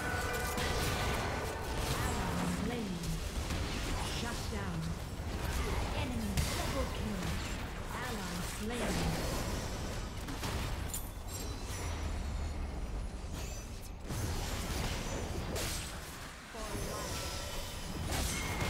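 Magic blasts and weapon clashes ring out in a fast fight.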